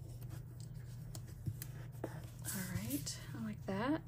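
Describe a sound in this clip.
Pages rustle as a planner is laid flat.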